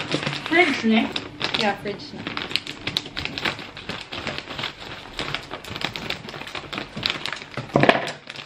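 Scissors snip through a plastic bag.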